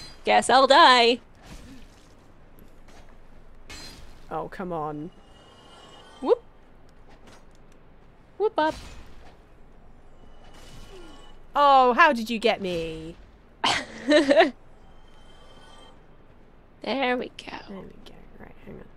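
A young woman talks with animation into a microphone, in short bursts.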